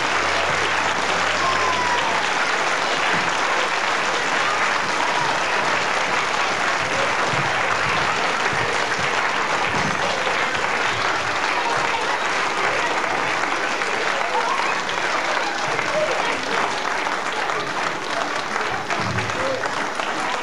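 A group of children sing together in a large hall.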